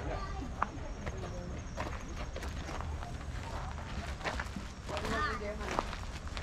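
A man and a woman talk casually nearby outdoors.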